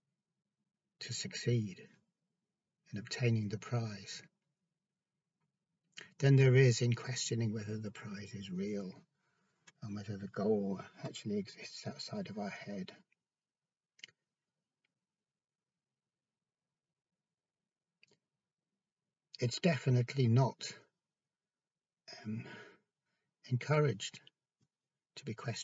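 A middle-aged man talks close up, speaking earnestly in bursts with pauses.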